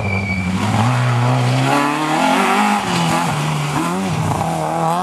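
A rally car engine roars loudly, revving up and down as the car speeds past.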